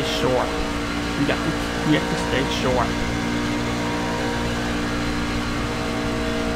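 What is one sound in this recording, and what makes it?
A race car engine roars steadily at high speed.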